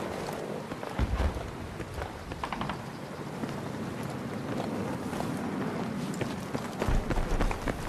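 A tank engine rumbles nearby.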